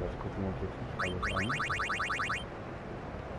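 A menu cursor beeps rapidly.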